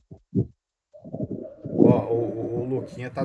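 A second man speaks close to a microphone.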